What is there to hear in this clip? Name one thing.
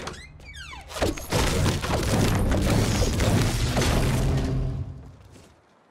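A pickaxe smashes against glass with sharp cracks.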